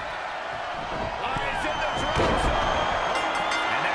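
A heavy body slams onto a wrestling ring mat with a thud.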